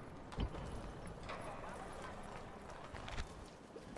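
A soft interface click sounds.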